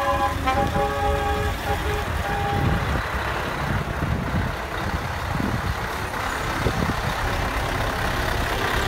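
A truck engine idles nearby with a low, steady rumble.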